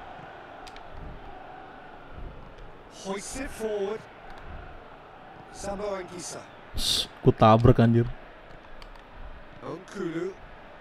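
A large stadium crowd murmurs and cheers steadily in the background.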